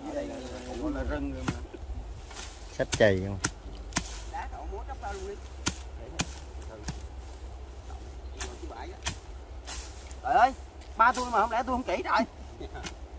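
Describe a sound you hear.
A hoe thuds and scrapes into dry ground.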